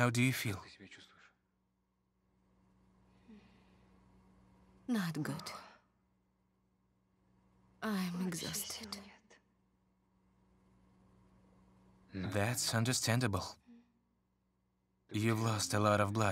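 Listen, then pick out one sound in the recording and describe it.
A man speaks quietly and emotionally, close by, in short bursts with pauses.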